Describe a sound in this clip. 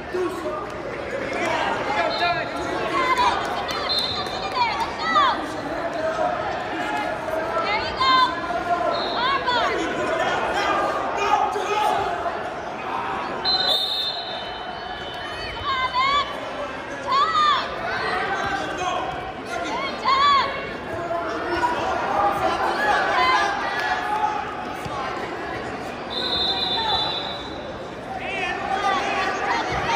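Spectators shout and cheer from the sidelines.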